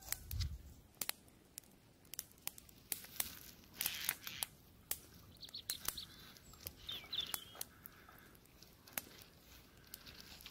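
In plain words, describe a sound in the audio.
A small fire of dry twigs crackles and pops.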